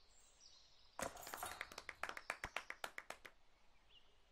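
A disc crashes into metal chains, which rattle and jingle briefly.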